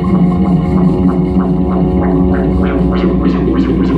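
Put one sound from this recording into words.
A jazz band plays live with drums, bass, guitar and horns.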